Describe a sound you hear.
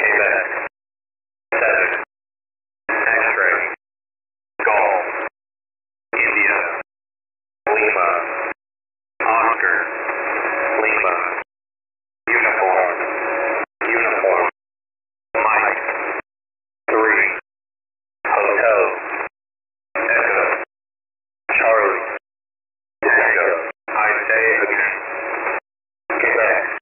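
A radio receiver plays bursts of noisy signal, broken by short silences.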